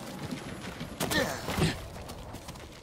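A heavy thud sounds as a figure lands after a jump.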